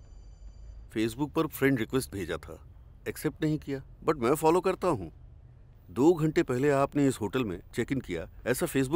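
A young man answers calmly.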